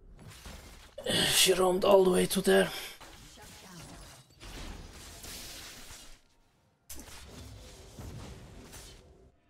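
Magic spells whoosh and blast in a battle between fighters.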